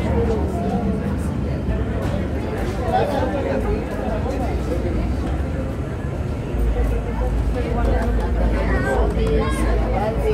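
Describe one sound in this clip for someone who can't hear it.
Paper rubs and scrapes across a wet painted surface.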